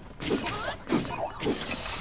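A metal blade strikes a foe with a sharp crack.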